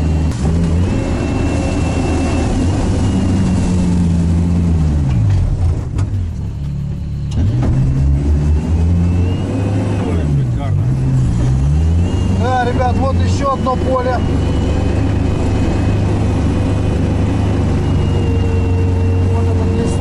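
A vehicle engine drones loudly up close, rising and falling in pitch as it revs.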